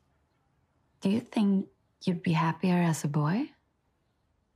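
A woman asks a question gently close by.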